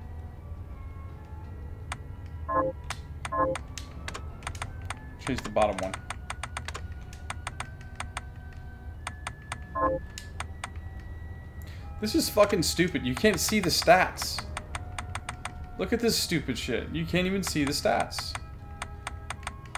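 Short electronic menu blips click as a cursor moves through a video game menu.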